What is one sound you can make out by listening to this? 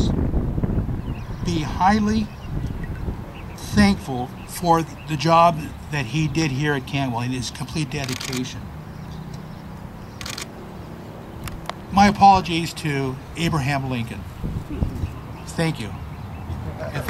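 A man speaks steadily through a loudspeaker outdoors.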